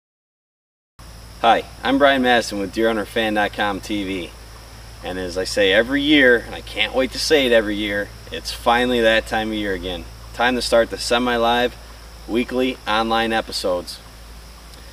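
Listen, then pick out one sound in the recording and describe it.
A man speaks calmly and clearly outdoors, close by.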